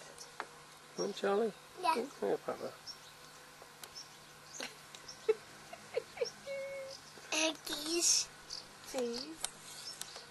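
A toddler babbles and chatters up close.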